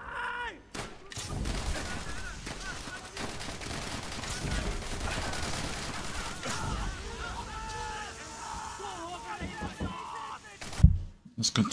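Gunfire and explosions roar from a game.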